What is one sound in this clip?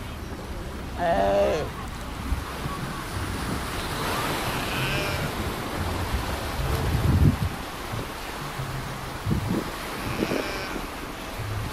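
A sea lion barks and bellows nearby.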